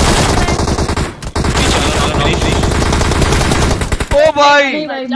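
Rapid gunfire rattles loudly in a video game.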